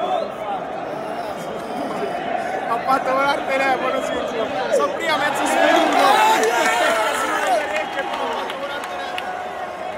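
A young man talks and laughs excitedly close by.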